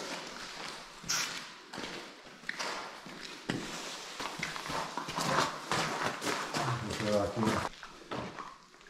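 Footsteps scuff on a gritty stone floor.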